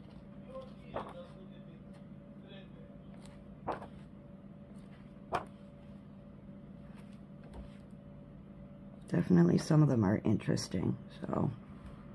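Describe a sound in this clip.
Paper pages are turned one by one with a soft rustle.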